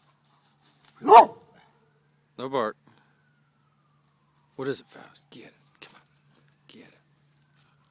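A dog barks loudly nearby a few times.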